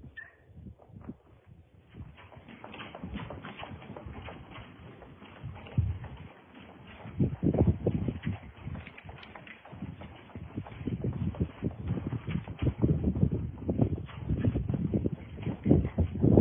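A horse's hooves thud on soft dirt.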